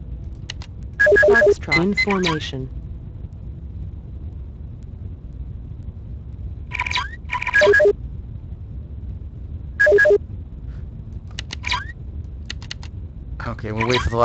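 Short electronic alert tones beep in bursts.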